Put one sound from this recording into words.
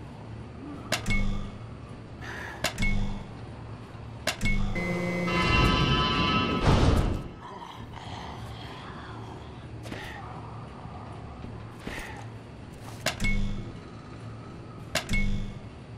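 A button clicks when pressed.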